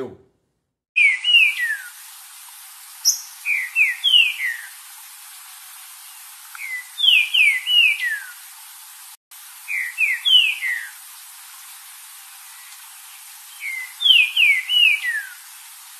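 A caged bird sings in short bursts of quick, rising chirps, heard outdoors.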